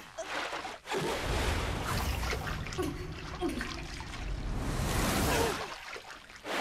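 Water splashes and churns roughly.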